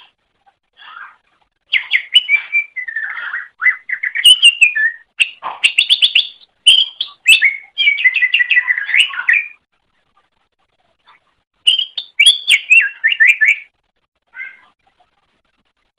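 A small songbird sings rapid, warbling chirps and trills in bursts.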